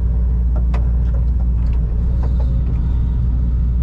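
Clumps of earth and stones clatter from an excavator bucket.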